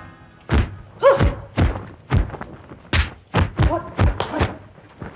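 A woman cries out sharply.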